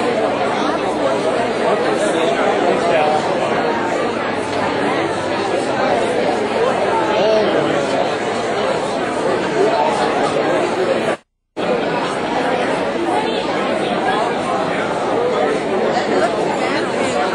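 A crowd of adults chatters loudly all around, in a large room.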